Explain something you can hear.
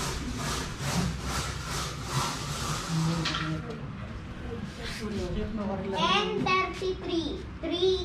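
A middle-aged woman talks loudly.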